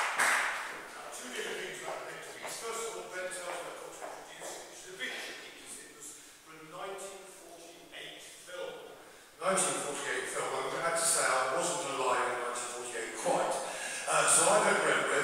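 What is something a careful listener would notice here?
A man speaks calmly into a microphone, echoing through a large hall.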